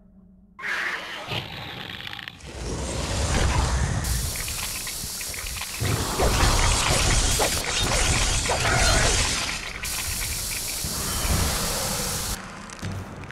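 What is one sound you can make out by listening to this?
Monsters clash and strike each other in a noisy, busy fight.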